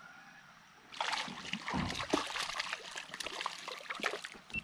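A hooked fish thrashes and splashes at the water's surface.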